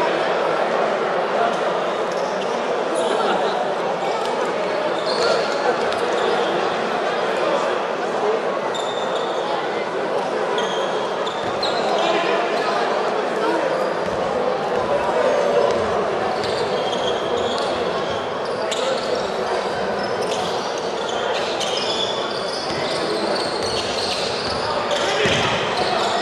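A crowd murmurs and chatters throughout a large echoing indoor hall.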